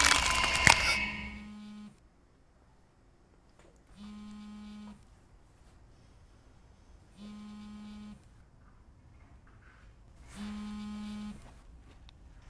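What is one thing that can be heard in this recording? A phone buzzes in short repeated bursts close by.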